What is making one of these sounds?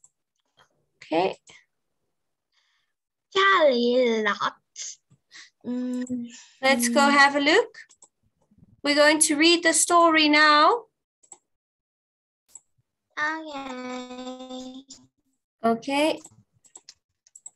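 A girl speaks over an online call.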